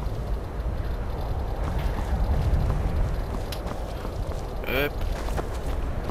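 Wind blows steadily with a low rumble.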